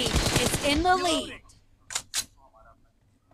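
A rifle fires in short bursts.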